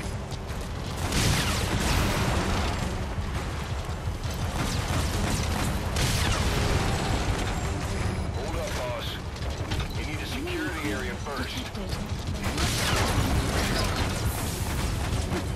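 Gunfire cracks in bursts.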